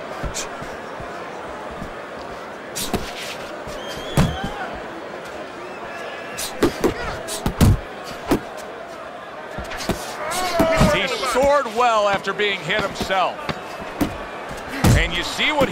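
Punches land with heavy thuds.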